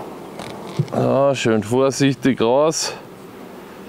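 A wooden hive frame scrapes as it is lifted out.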